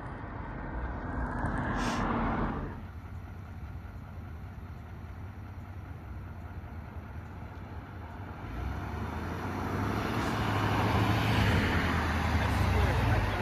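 A diesel truck engine rumbles closer as the truck tows a trailer past.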